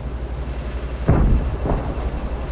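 A shell explodes on impact.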